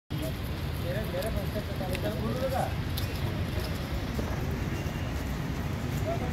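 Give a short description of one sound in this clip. Footsteps of a group of men shuffle outdoors.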